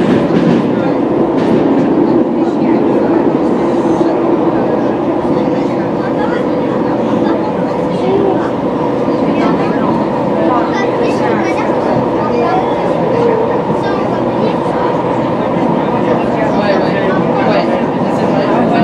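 A subway train rumbles loudly along the tracks.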